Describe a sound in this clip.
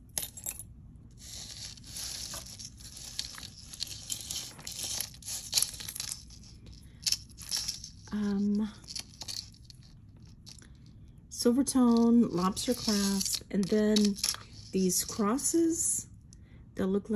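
Thin metal chains clink and jingle softly close by.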